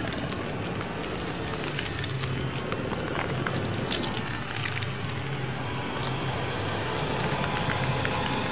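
A large snake hisses.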